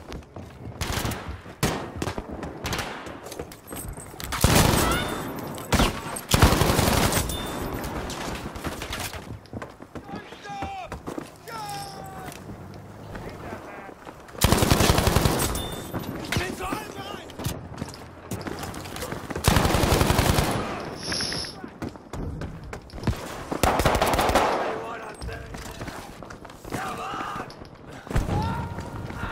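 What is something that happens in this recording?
Gunfire rattles in rapid bursts close by.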